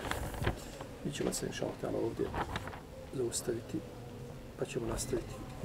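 A middle-aged man speaks calmly into a nearby microphone.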